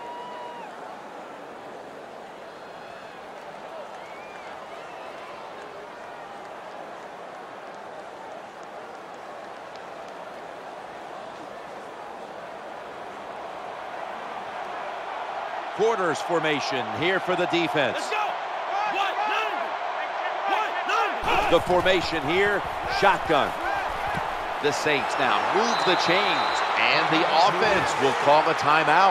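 A stadium crowd roars steadily in the distance.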